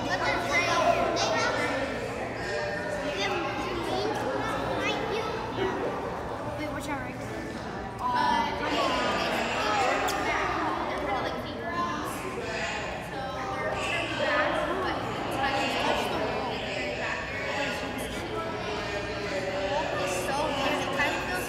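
Children chatter and call out in an echoing indoor hall.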